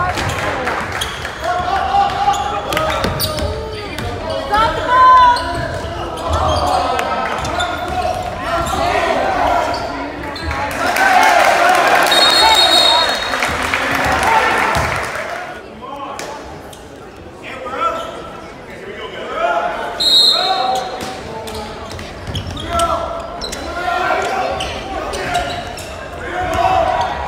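Sneakers squeak on a hardwood basketball court in a large echoing gym.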